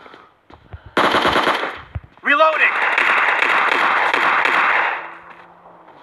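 Automatic rifle fire rattles in quick bursts.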